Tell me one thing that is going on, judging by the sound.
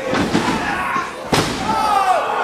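A wrestler slams onto a wrestling ring mat with a loud thud.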